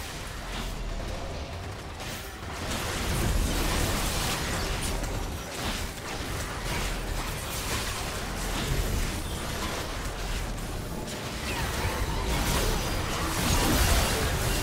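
Magic spells whoosh and crackle in a fast video game fight.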